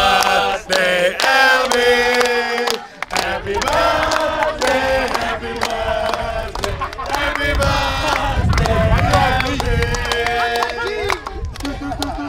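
A group of young men chant loudly outdoors.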